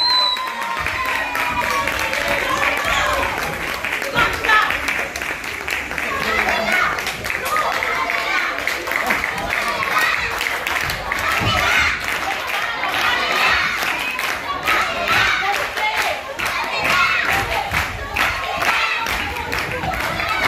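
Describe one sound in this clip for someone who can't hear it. Children shout and cheer excitedly in an echoing hall.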